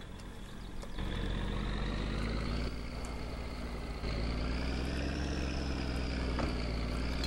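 A truck engine starts and idles with a steady low rumble.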